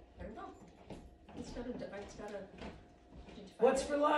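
A woman sings into a microphone.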